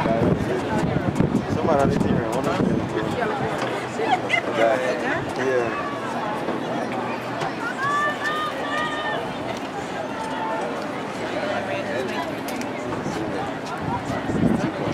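A crowd of people chatter and cheer outdoors.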